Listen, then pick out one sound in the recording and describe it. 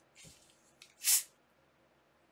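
A bottle cap hisses open as a fizzy drink is opened.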